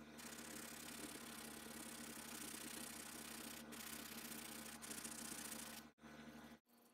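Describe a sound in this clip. A sanding block scrapes rhythmically over wood.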